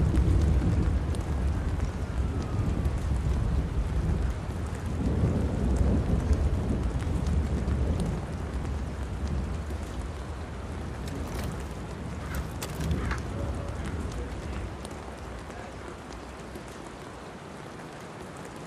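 Footsteps thud steadily on pavement.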